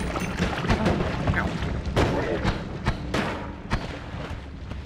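Explosions boom and crackle in a video game.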